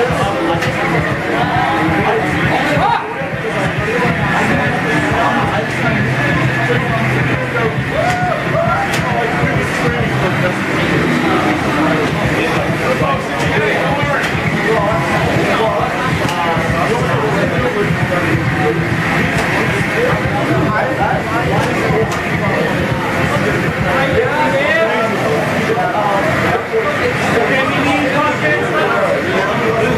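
A racing game's car engine roars at high speed through loudspeakers.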